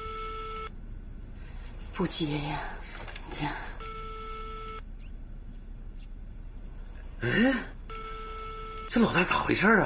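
A telephone handset gives a repeated ringing tone.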